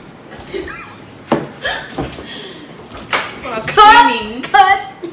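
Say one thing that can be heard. A middle-aged woman laughs loudly close by.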